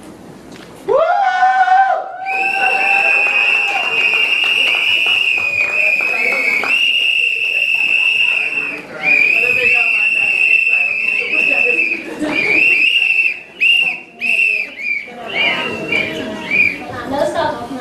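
A young woman sings through a microphone, holding long notes.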